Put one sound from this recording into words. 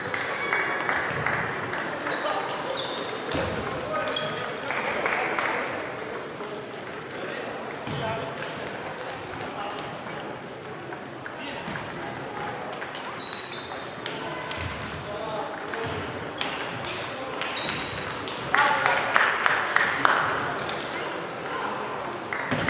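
Table tennis balls click against paddles and tables in a large echoing hall.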